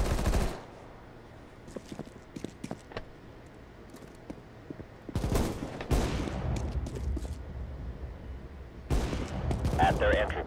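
Footsteps thud on hard ground and metal stairs.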